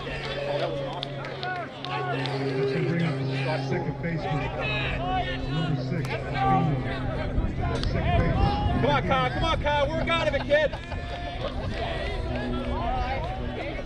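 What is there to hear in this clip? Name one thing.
A crowd of men and boys chatter and call out nearby outdoors.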